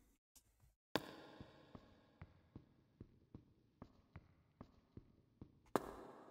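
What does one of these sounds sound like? Footsteps walk steadily across a stone floor in an echoing hall.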